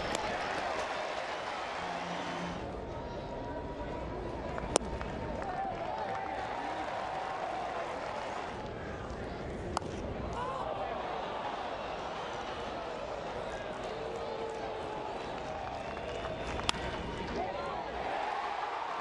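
A large crowd murmurs and cheers in a big open stadium.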